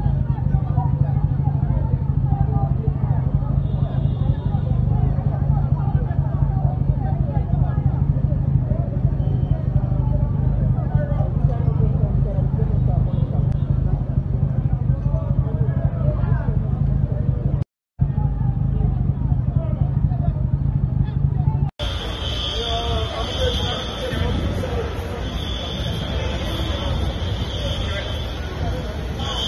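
A crowd of people talks excitedly nearby.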